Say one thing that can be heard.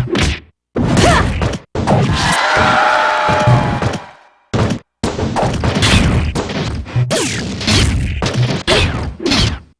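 Blows land with sharp, punchy hits in a fighting game.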